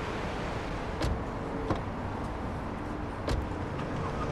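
A car door shuts with a click.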